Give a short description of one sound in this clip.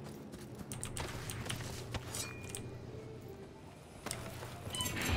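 Gunshots crack in a video game.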